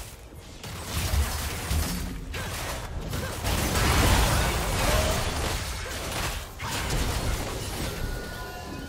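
Magic blasts, clashing weapons and bursts of energy crackle in a hectic battle.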